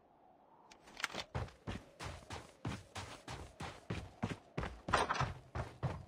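Footsteps thud on wooden boards and snow.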